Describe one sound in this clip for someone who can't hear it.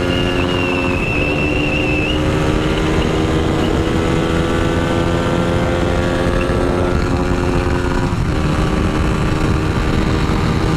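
A motorcycle engine hums steadily at speed, with brief shifts in pitch as gears change.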